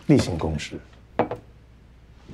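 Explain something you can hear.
A glass is set down on a table.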